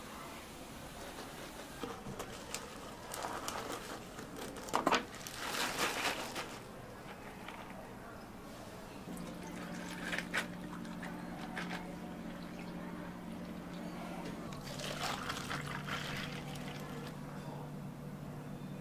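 Liquid pours over ice in a plastic cup with a crackling splash.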